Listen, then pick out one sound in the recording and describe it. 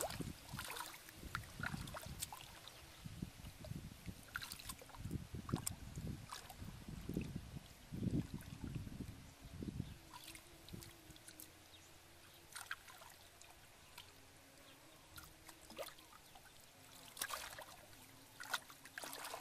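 Hands splash and squelch in shallow muddy water.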